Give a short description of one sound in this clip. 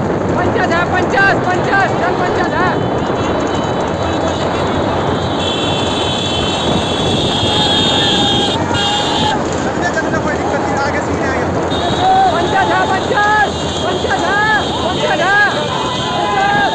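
A motorbike engine roars close by.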